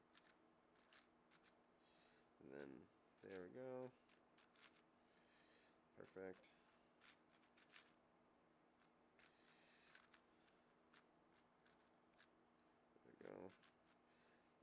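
A puzzle cube clicks and clacks as it is turned quickly.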